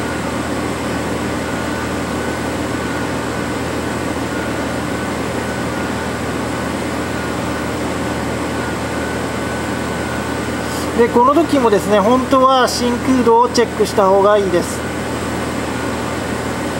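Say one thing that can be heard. An electronic device hums steadily.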